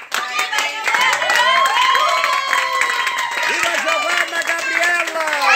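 A group of people sings together loudly.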